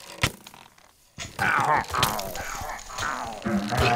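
A sword strikes a creature with sharp hits.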